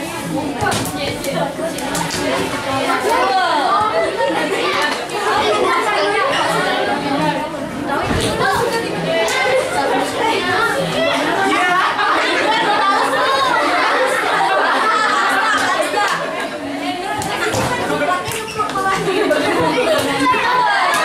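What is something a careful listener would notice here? Bare feet shuffle and stamp on a hard floor.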